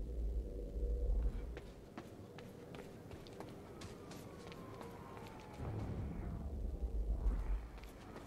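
Footsteps run quickly on wet pavement.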